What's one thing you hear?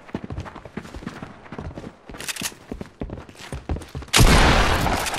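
Footsteps thud quickly across a hard floor.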